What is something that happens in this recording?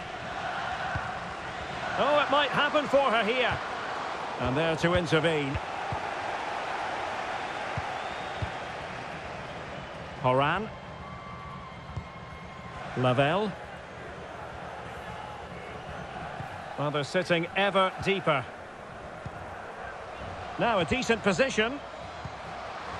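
A stadium crowd murmurs and cheers steadily in the background.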